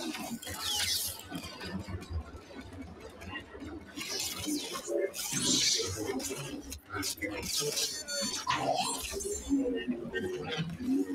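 A lightsaber hums and clashes.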